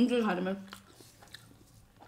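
Fingers tear flatbread.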